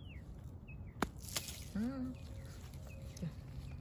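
Dry leaves rustle softly as a hand touches a mushroom.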